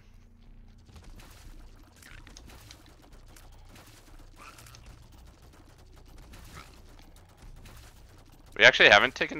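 Video game laser blasts crackle and roar in quick bursts.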